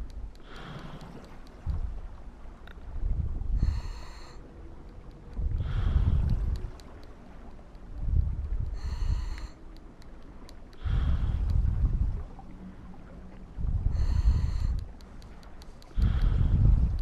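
Bubbles rush and gurgle out in bursts every few seconds.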